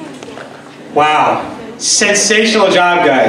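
A young man speaks cheerfully through a microphone in a large hall.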